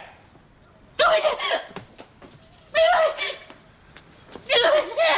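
A woman sobs loudly in bursts, close by.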